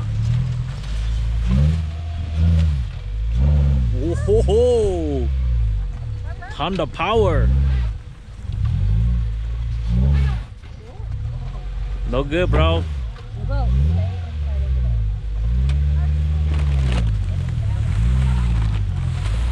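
A car engine revs up and down hard, again and again.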